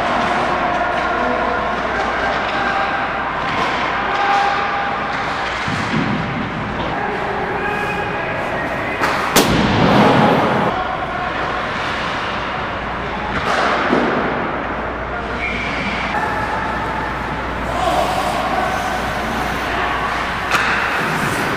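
Young male players shout and call out across an echoing rink.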